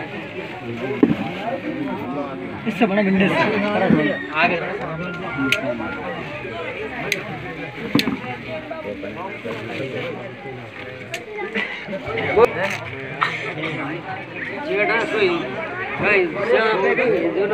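A crowd of men and boys chatter nearby, with several voices overlapping.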